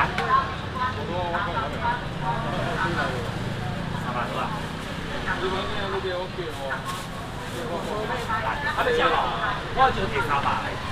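Several men and women talk nearby at once, outdoors.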